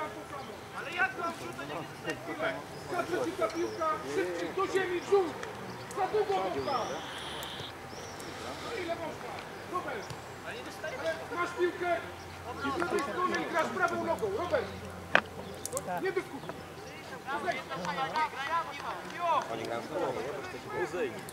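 Men shout and call out to each other outdoors across an open field.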